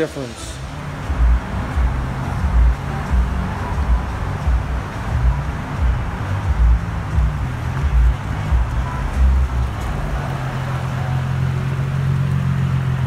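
A car engine idles nearby with a deep, uneven burbling rumble.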